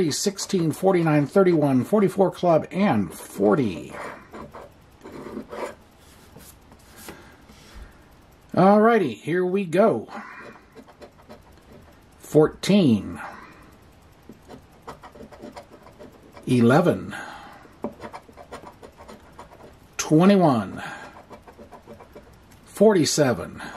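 A coin scrapes across a scratch-off card.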